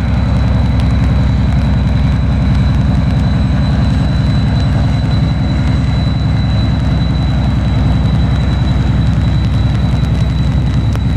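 A long freight train rumbles and clatters steadily along the track.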